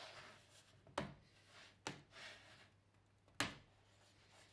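A sheet of plasterboard snaps along a scored line.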